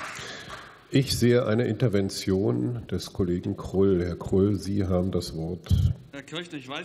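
An older man speaks steadily into a microphone in a large hall.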